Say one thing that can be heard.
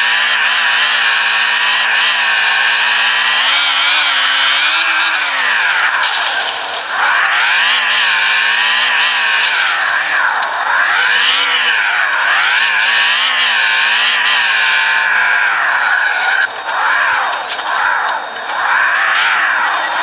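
A sports car engine revs up and down loudly.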